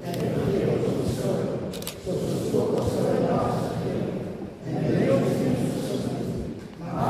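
An older man sings along into a microphone.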